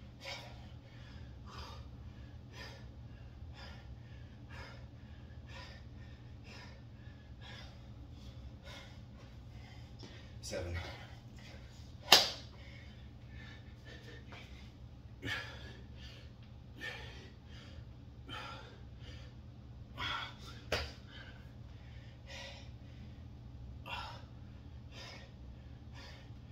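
A man breathes hard and rhythmically with effort.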